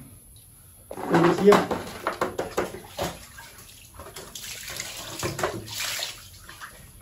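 A plastic basket knocks and rattles as it is handled.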